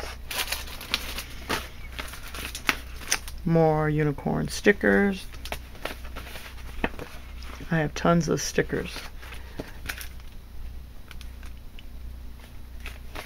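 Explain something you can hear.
Plastic packets rustle and crinkle as they are handled.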